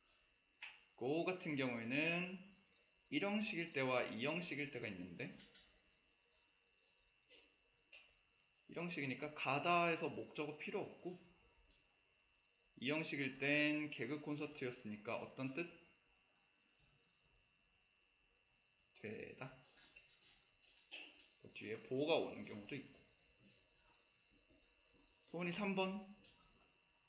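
A young man speaks calmly into a close microphone, pausing between phrases.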